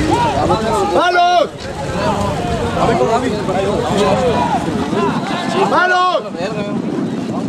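A referee blows a whistle in short sharp blasts.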